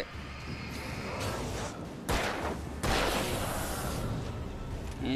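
A bright flare hisses and crackles as it burns.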